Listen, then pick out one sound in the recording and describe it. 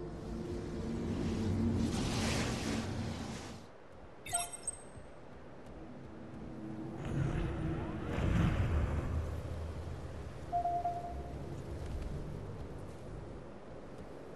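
Footsteps thud as a game character runs.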